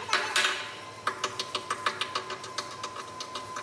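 A hammer taps rapidly on metal.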